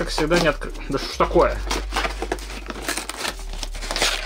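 Paper tears.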